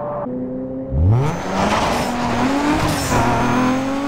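Tyres skid and hiss over snow.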